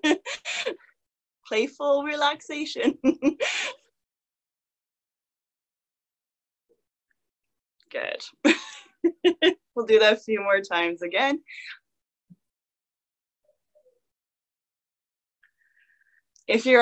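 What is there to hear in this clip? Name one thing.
A young woman speaks with animation through a microphone, with long pauses.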